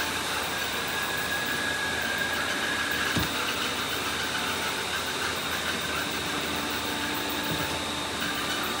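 A small robotic toy whirs as it rolls across a wooden floor.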